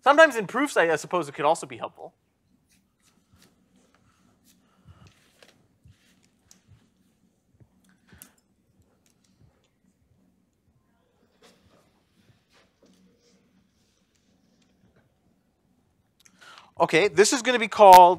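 A man speaks calmly in a lecture voice, close by.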